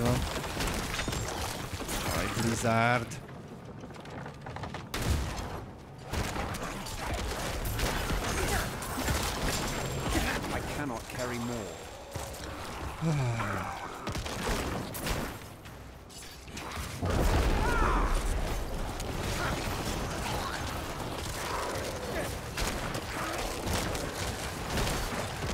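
Spell blasts crackle and boom in a game.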